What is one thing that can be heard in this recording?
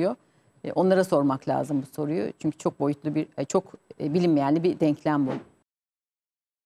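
A middle-aged woman speaks with animation into a close microphone.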